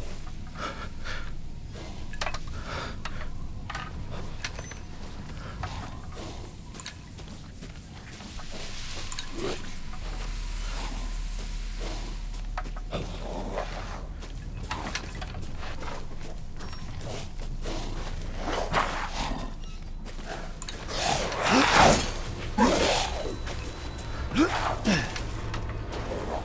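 Dry brush rustles and scrapes close by.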